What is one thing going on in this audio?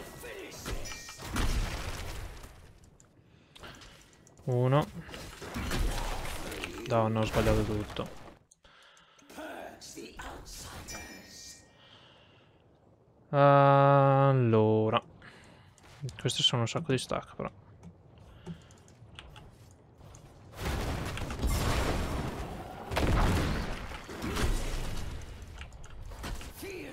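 Game battle effects clash and burst.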